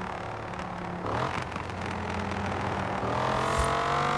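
A car engine shifts gears with a brief dip in its roar.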